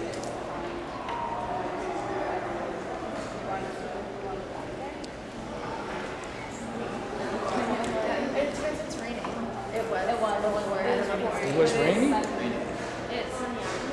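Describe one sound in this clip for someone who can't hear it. Several young women talk and chatter close by.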